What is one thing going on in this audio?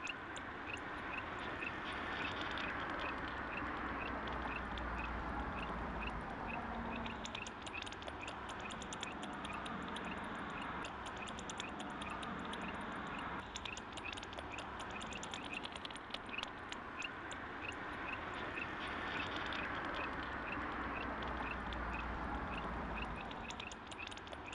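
A large flock of birds chirps and calls in a dense, steady chorus.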